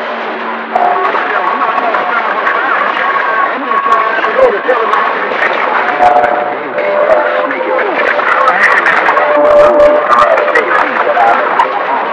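Whistling tones waver in and out through a radio receiver's speaker.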